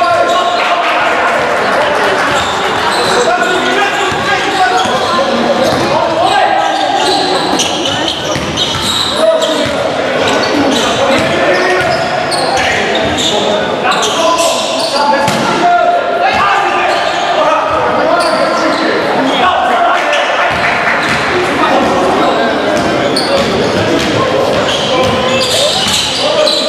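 Young men shout to each other across the court.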